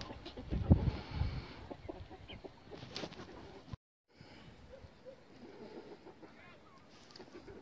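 Hens cluck softly nearby.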